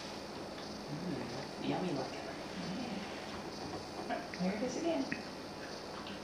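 A woman talks softly to a puppy close by.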